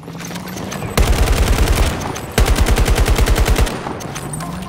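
An assault rifle fires in rapid bursts.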